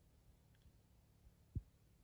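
A plastic snack wrapper crinkles.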